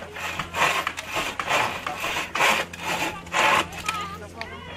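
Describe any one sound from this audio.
A hand saw rasps through wood in quick strokes.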